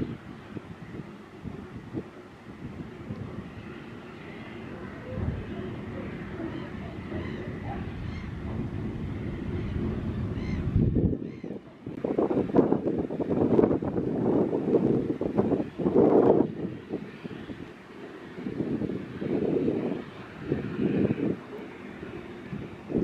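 A ferry's engine hums low across the water.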